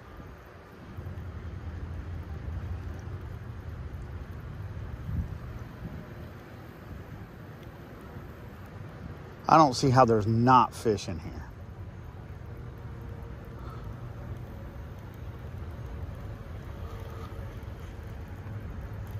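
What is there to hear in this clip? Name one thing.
A fishing reel clicks and whirs as it is wound in.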